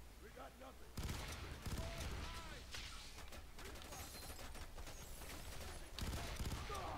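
Guns fire in rapid bursts of shots.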